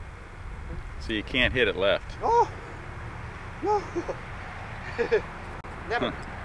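An older man talks calmly outdoors.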